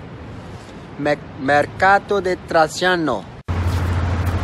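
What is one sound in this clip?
A young man speaks with animation close to a phone microphone.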